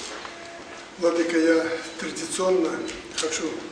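A man speaks calmly nearby in an echoing hall.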